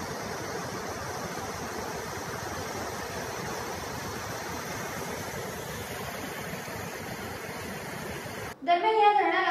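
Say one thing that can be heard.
Floodwater rushes and roars steadily.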